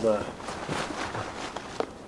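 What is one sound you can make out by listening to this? Hands and boots scrape on stone while climbing.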